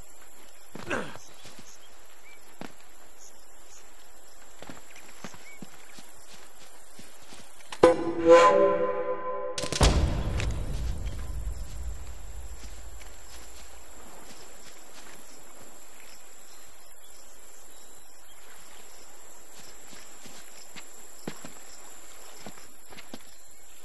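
Footsteps tread softly over grass and earth.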